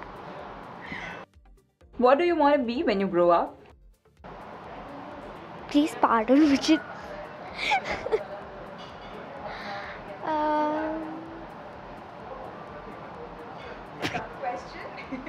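A young girl giggles and laughs.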